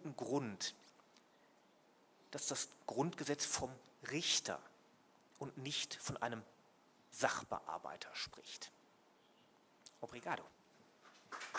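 A middle-aged man speaks calmly into a microphone, with pauses.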